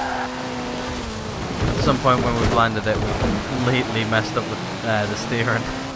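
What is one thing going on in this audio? Tyres skid and hiss as a car drifts on a slippery road.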